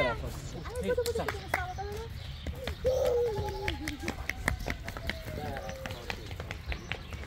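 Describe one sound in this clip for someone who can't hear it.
Small feet patter quickly on paving.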